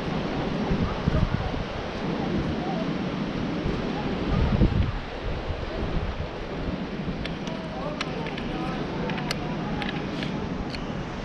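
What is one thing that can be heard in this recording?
Wind buffets the microphone outdoors with a low rumble.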